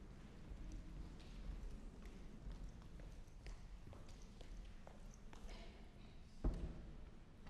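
A cart's wheels roll across a wooden stage in a large echoing hall.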